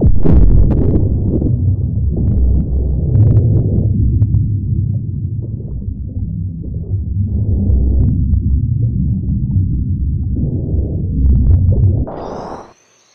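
Water rumbles and churns in a low, muffled drone.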